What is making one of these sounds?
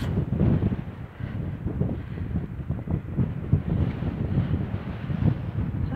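Wind gusts and rumbles in the open outdoors.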